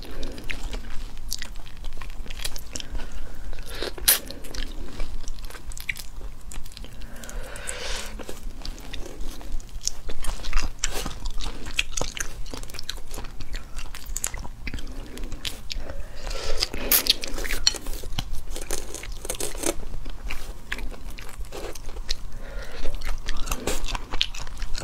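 Shrimp shells crack and crunch close up as they are peeled by hand.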